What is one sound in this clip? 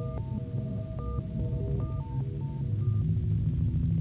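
A synthesizer plays a bright stepping melody.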